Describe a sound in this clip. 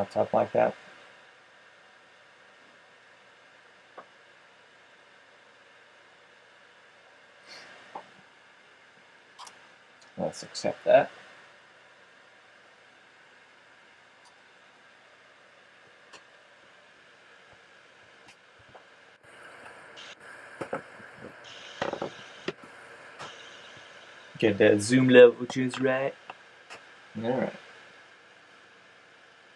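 A laptop fan whirs steadily.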